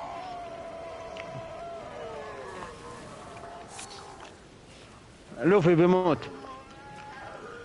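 Footsteps rustle through tall grass and leaves.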